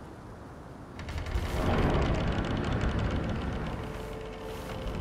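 A massive stone door grinds and rumbles as it is pushed open.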